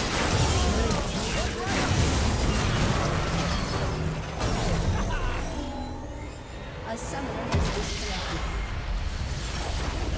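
Game spell effects crash and whoosh in rapid bursts.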